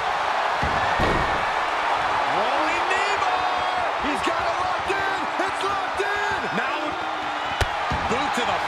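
Bodies thud heavily onto a wrestling mat.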